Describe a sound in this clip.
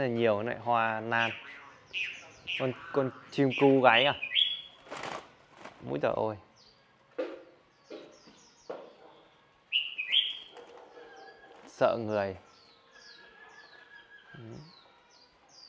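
Caged birds chirp in short, high notes.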